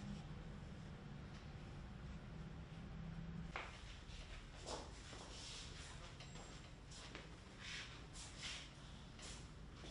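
A brush sweeps softly across paper.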